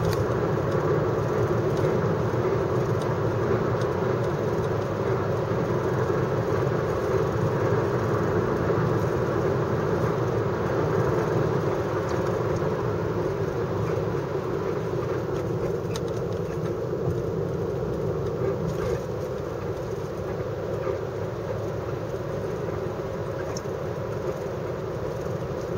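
A car drives at speed, heard from inside the car.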